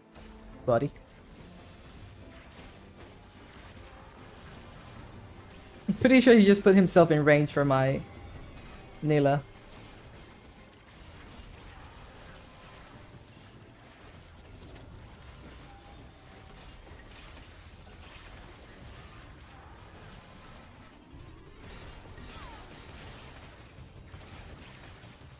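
Game battle effects clash and whoosh quietly in the background.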